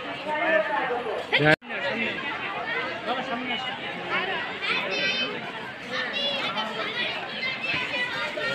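A crowd of people chatters and calls out nearby, outdoors.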